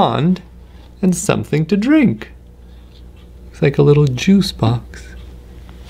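A man reads aloud with animation, close by.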